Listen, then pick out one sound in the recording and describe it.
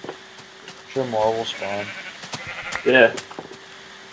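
A sheep bleats.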